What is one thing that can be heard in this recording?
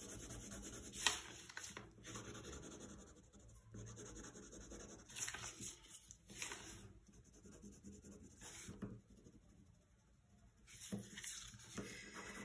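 A sheet of paper rustles and slides as it is turned.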